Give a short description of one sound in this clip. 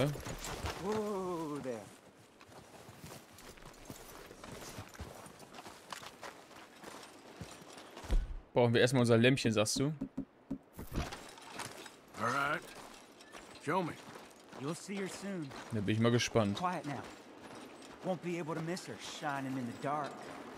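A man speaks with animation through a close microphone.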